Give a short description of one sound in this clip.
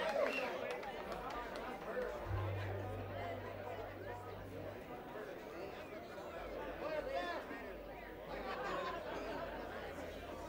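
An acoustic guitar strums along.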